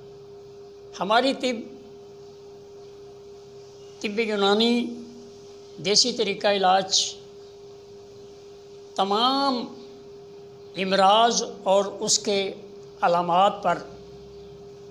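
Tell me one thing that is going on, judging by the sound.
An elderly man speaks slowly in short phrases with long pauses, close to a microphone.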